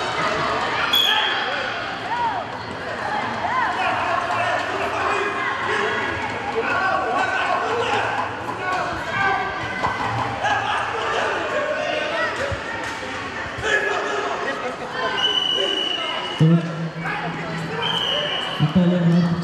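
A referee blows a short, sharp whistle several times.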